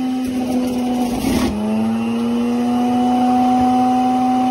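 A juicer motor strains and slows as leaves are pushed in, then speeds back up.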